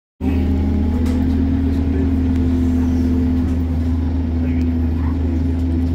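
A bus engine hums and drones steadily.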